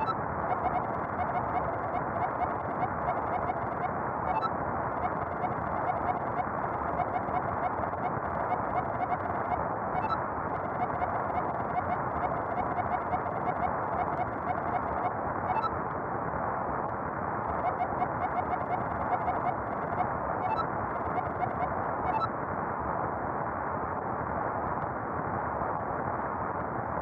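Game music plays steadily throughout.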